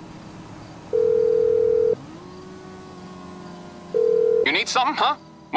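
A phone call's ringing tone sounds twice.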